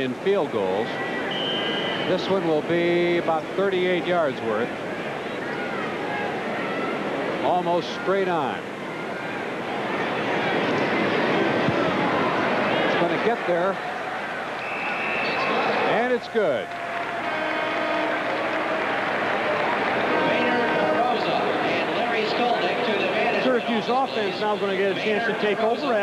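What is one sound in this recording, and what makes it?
A large stadium crowd murmurs and cheers.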